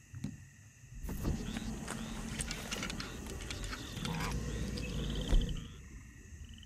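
A fishing rod swishes as a line is cast over water.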